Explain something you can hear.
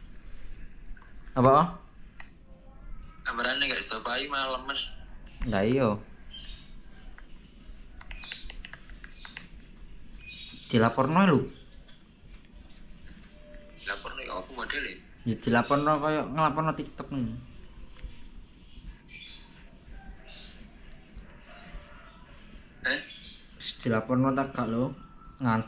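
A young man's voice answers through a phone on a video call.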